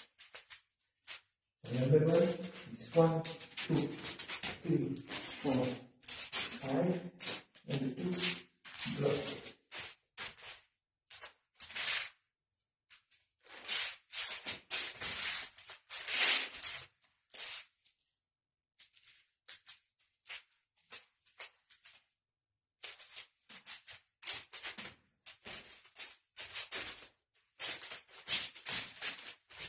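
Sticks swish through the air.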